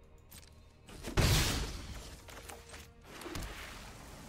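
A loud game sound effect bursts and rumbles as a card is played.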